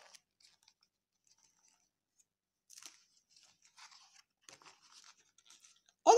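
Paper pages rustle as a book is handled and turned.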